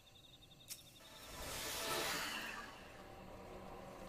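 A magic spell whooshes and shimmers.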